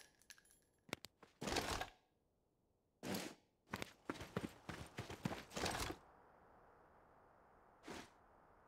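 Gunfire rings out in short bursts.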